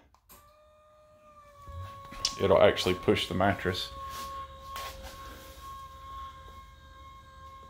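An electric bed motor hums steadily.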